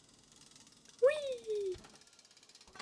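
A cat meows once.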